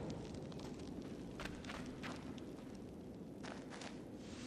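A torch flame crackles and flickers steadily.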